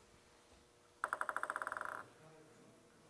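A table tennis ball bounces quickly on a table.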